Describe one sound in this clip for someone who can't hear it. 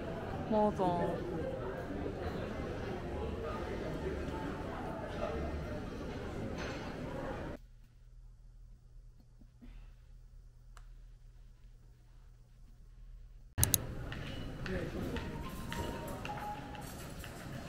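A crowd of people murmurs in a large, echoing hall.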